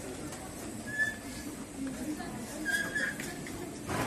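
A medical monitor beeps.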